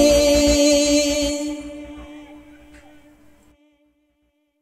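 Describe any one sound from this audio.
A young man sings a sustained note that slowly fades away.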